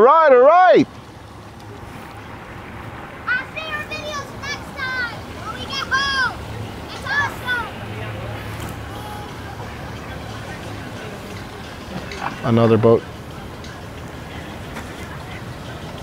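A boat's outboard motor rumbles steadily on the water.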